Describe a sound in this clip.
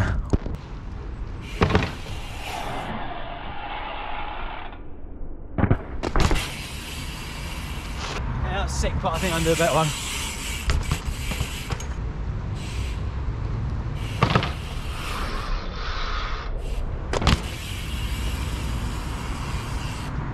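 Bicycle tyres roll over paving stones.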